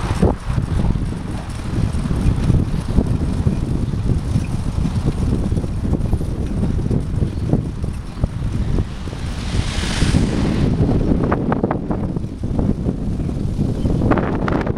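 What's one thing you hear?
Bicycle tyres roll along a smooth path.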